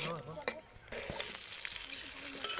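Food sizzles in hot oil in a metal wok.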